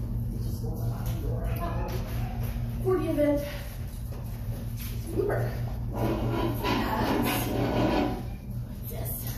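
A woman speaks brightly to a dog, in a room with some echo.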